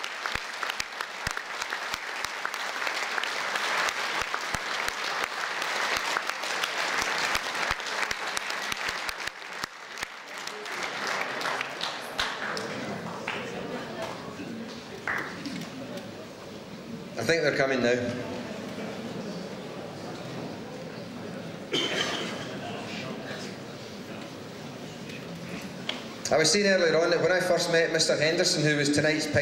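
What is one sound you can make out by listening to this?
An older man speaks with animation into a microphone, heard through loudspeakers in a large echoing hall.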